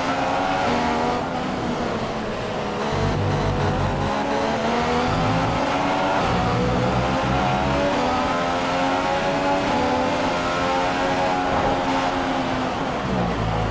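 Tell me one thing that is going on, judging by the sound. A Formula One V6 turbo engine revs high and shifts up through the gears as the car accelerates.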